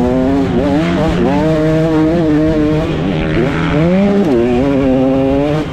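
A motorcycle engine revs loudly up close, rising and falling in pitch.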